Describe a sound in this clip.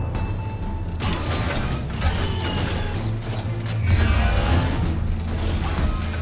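A car engine starts and roars.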